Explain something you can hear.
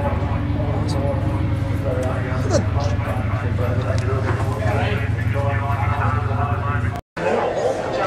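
A motorcycle engine idles close by with a steady low rumble.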